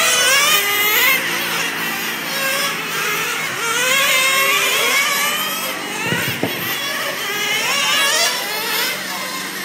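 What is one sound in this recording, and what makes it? Several nitro-engined model race cars whine as they rev up and down around a track.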